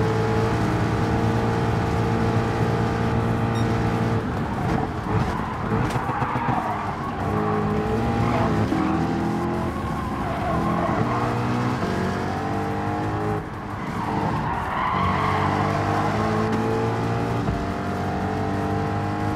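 A race car engine roars loudly, rising in pitch as it speeds up and dropping sharply as it slows for corners.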